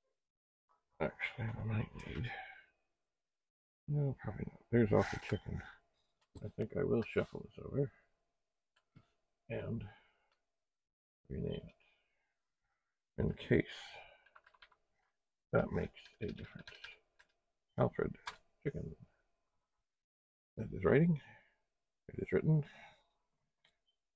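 An older man speaks calmly and closely into a microphone, in short phrases with pauses.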